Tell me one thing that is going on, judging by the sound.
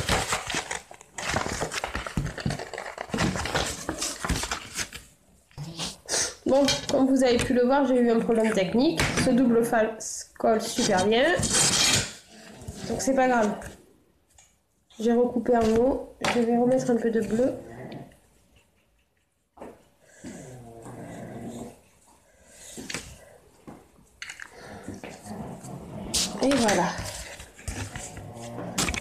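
Stiff card rustles and taps as it is handled.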